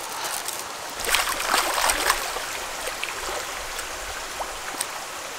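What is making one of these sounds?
Water splashes as a pot is dipped into a stream.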